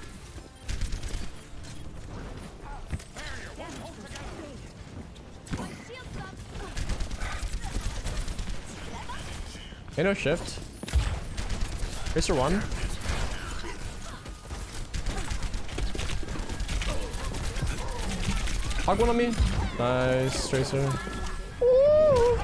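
Gunfire from a game weapon rattles in rapid bursts.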